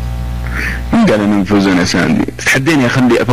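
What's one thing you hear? A man speaks into a microphone with animation.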